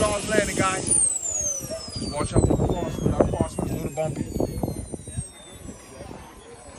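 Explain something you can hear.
A model jet roars off, its whine dropping in pitch as it flies away into the distance.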